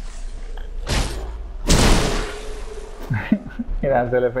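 A blade strikes a body with heavy thuds.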